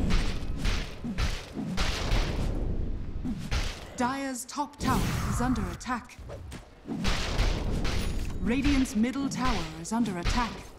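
Magic spells crackle and burst in a fast video game battle.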